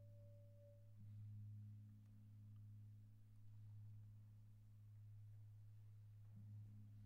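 A gong is struck softly with a mallet and rumbles low.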